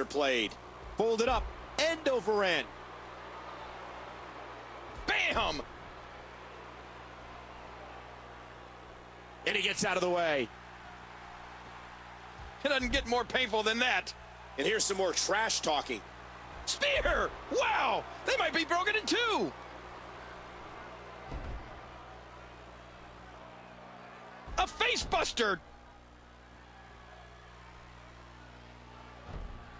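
An arena crowd murmurs and cheers.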